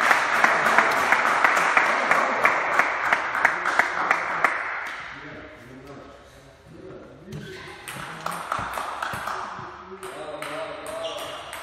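A ping-pong ball clicks back and forth between paddles and the table in an echoing hall.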